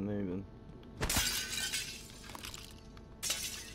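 A glass pane cracks and shatters nearby.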